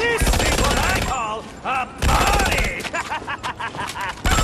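A man speaks with glee.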